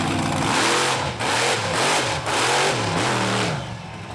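A heavy truck crashes down onto old cars with a metal crunch.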